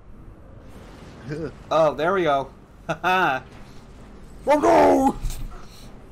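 A thrown blade whooshes through the air.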